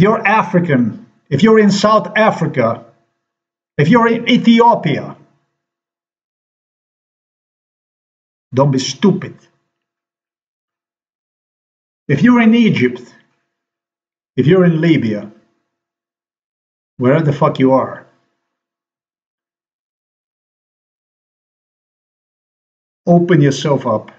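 A middle-aged man speaks calmly close to a microphone, in short bursts with long pauses.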